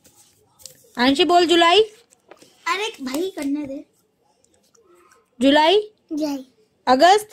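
A small child speaks in a high voice close by.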